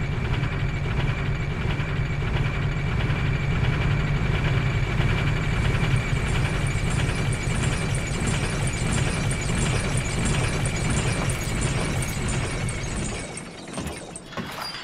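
Metal armor clanks with each rung as a figure climbs a ladder.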